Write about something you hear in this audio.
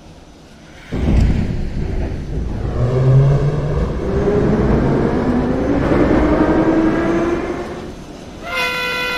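An electric metro train pulls away, its traction motors whining up in pitch.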